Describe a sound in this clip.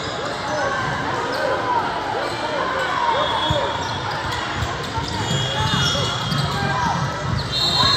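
The noise of a crowd echoes around a large hall.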